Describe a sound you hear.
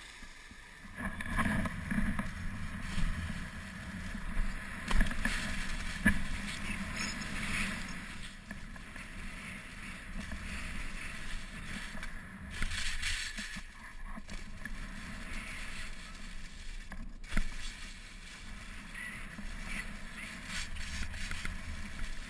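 Skis carve and scrape over packed snow.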